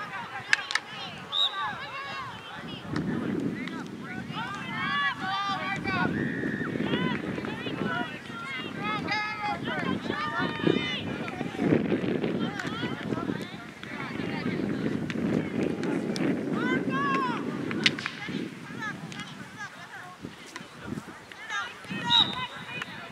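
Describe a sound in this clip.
Field hockey sticks clack against a ball and each other.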